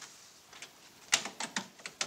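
A door latch clicks and rattles.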